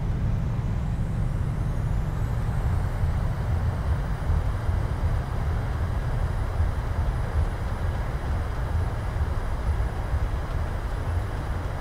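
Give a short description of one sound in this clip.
Jet engines whine, rising in pitch.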